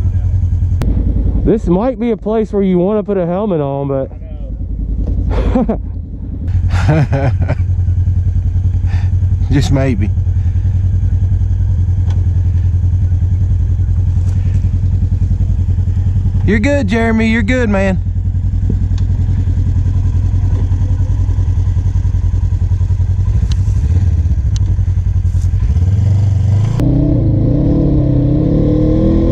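An off-road vehicle's engine rumbles steadily as it crawls over rough ground.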